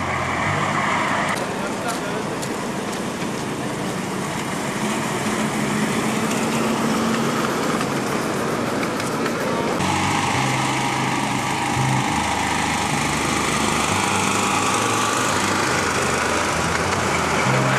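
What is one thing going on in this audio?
A miniature train rumbles along the track.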